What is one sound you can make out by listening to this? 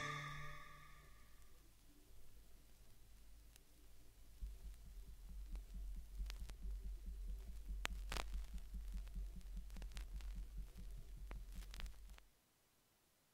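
A record crackles, pops and thumps rhythmically as the stylus rides the groove.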